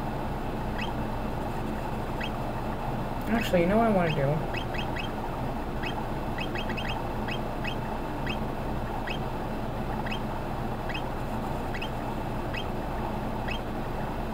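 Short electronic blips tick again and again.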